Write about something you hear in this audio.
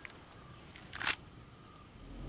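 A pistol clicks sharply as it is cocked.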